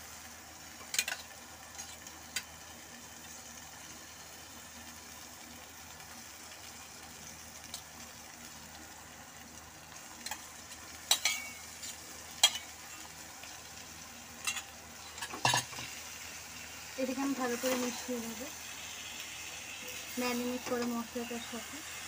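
A metal spatula clanks and scrapes against a wok.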